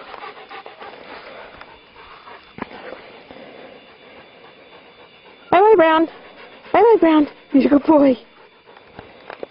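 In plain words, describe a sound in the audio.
A large dog pants.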